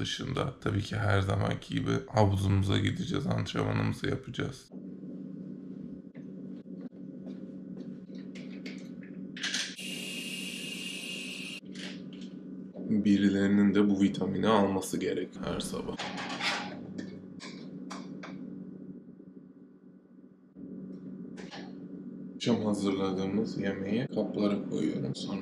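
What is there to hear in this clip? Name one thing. A young man talks calmly and close by.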